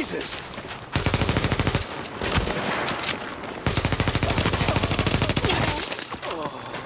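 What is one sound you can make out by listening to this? Rapid bursts of automatic gunfire ring out close by.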